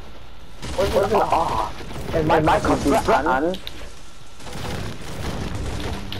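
A pickaxe chops at wood with dull knocks.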